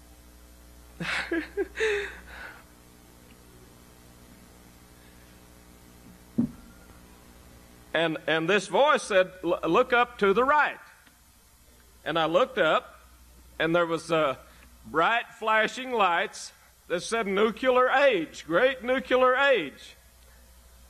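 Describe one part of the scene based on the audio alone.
An older man speaks with animation into a microphone, in pauses.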